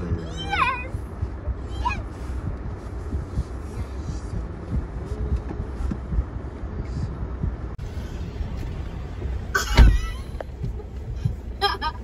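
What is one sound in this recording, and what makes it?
A truck engine rumbles as a truck drives slowly past.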